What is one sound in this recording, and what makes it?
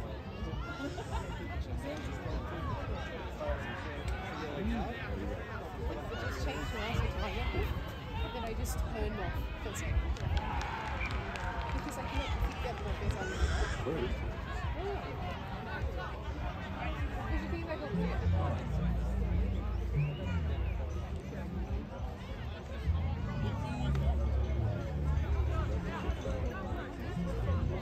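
A crowd of spectators chatters and calls out nearby outdoors.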